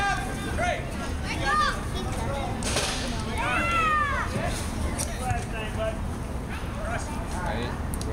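Young men call out to each other across an open outdoor field.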